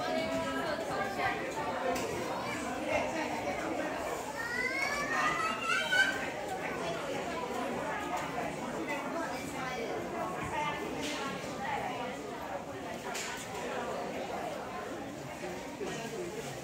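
Men and women chatter at a distance.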